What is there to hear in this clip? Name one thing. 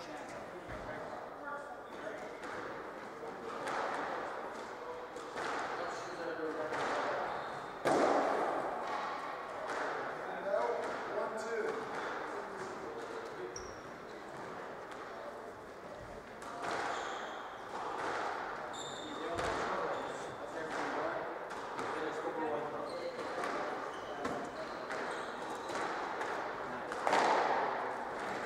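Rackets strike a squash ball with crisp pops.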